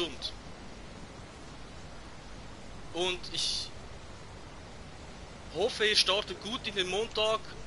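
A man speaks casually into a close microphone, in short bursts.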